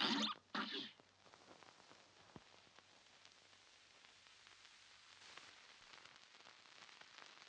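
Faint old-record crackle and hiss run on quietly.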